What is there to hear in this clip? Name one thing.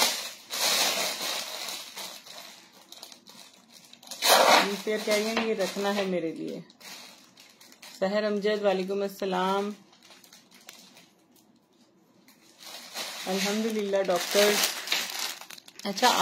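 A plastic bag crinkles and rustles as it is handled up close.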